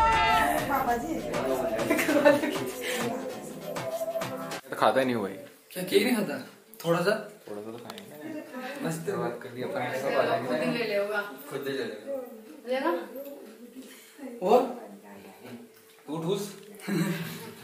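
Young men talk and laugh close by.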